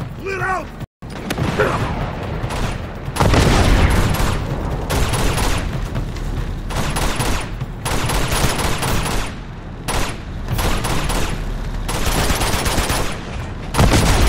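Rapid gunfire rattles and cracks in bursts.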